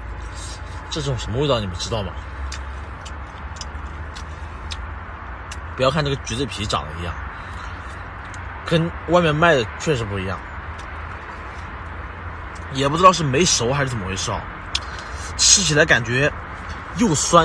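A young man speaks casually and close by, in short bursts.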